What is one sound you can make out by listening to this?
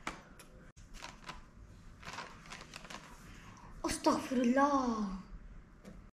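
Cardboard rustles as a boy handles a box.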